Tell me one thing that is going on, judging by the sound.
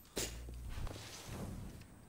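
A handgun fires sharp shots.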